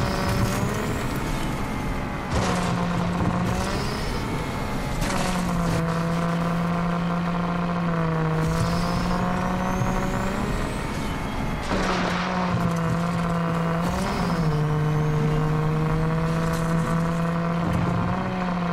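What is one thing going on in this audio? A buggy engine roars steadily at high revs.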